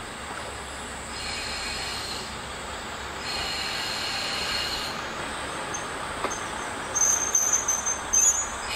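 Train wheels squeal and clack on the rails.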